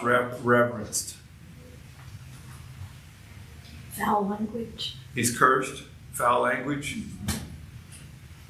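An older man speaks calmly and in a measured way, close by.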